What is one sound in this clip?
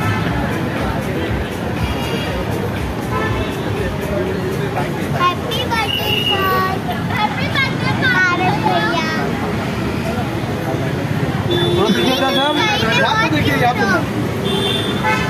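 A crowd chatters and calls out nearby outdoors.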